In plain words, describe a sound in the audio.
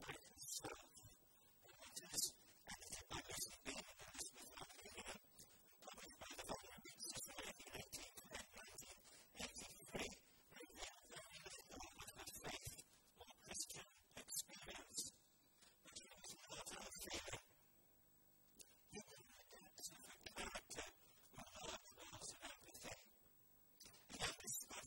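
An older man reads out steadily into a microphone in a large echoing room.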